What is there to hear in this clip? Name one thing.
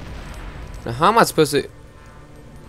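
A laser blaster fires with a sharp electronic zap.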